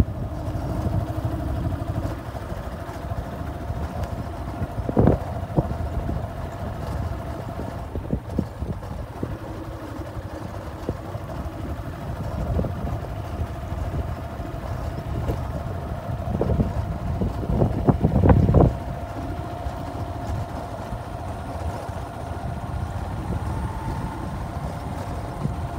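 Wind blows across the microphone outdoors, with gusts.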